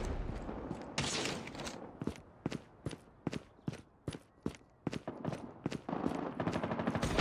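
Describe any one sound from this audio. Quick footsteps run over hard ground.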